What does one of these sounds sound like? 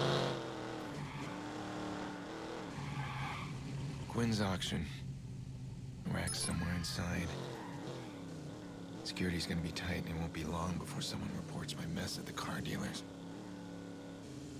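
Tyres rumble over rough pavement.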